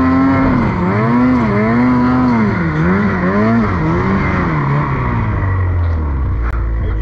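A snowmobile engine roars and revs up and down close by.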